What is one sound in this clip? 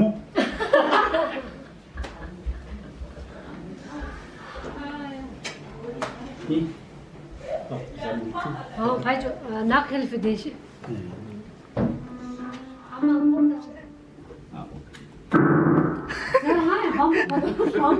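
Women talk and laugh together nearby.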